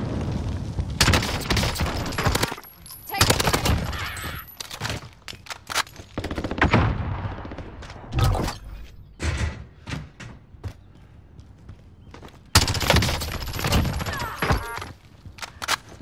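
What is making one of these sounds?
Rapid bursts of rifle fire ring out close by.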